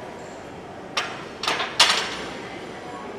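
A loaded barbell clanks onto metal hooks.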